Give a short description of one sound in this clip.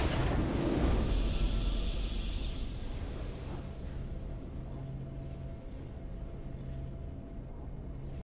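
A triumphant game fanfare plays and slowly fades.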